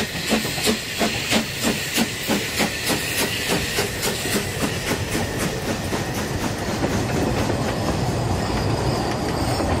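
Train wheels rumble and clatter over the rails.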